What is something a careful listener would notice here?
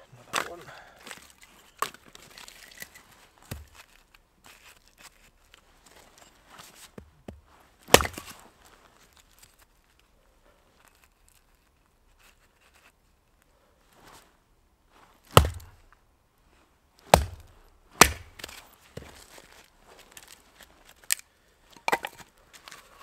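A knife blade is struck into wood with sharp knocks.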